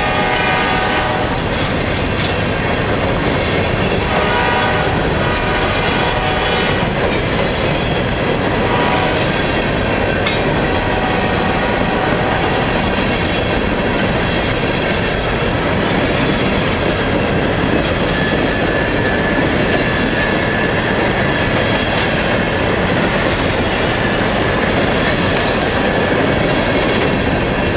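A freight train rumbles loudly past up close.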